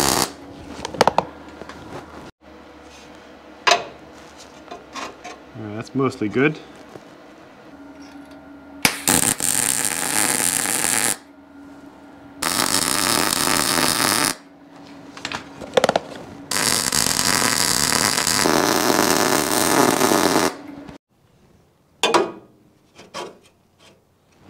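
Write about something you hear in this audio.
A metal bar clanks against metal.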